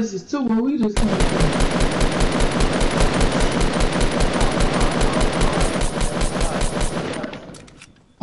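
A rifle fires in rapid bursts in a video game.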